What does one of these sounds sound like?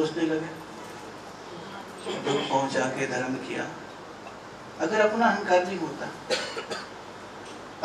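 A middle-aged man speaks calmly into a microphone, in bursts with pauses.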